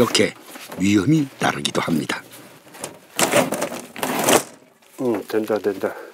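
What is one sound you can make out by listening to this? Wooden boards knock and rattle as a man pulls at them.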